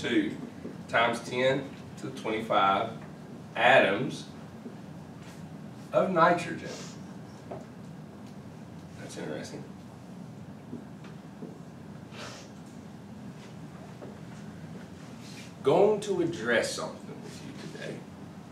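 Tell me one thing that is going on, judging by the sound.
A man speaks calmly in a lecturing tone nearby.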